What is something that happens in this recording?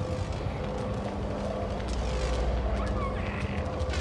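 Steam hisses from vents.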